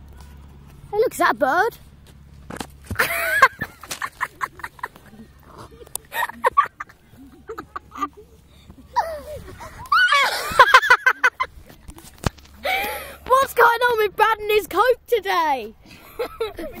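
Boys shout and laugh loudly nearby, outdoors.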